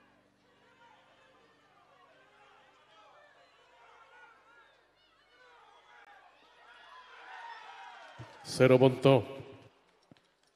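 A crowd in large stands cheers and shouts.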